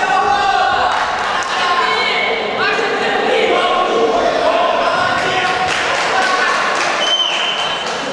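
Men shout with animation in an echoing hall.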